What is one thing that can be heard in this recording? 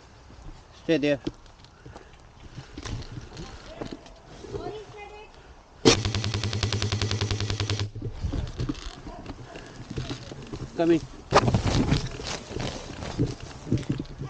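Ferns and leaves rustle as footsteps move through undergrowth.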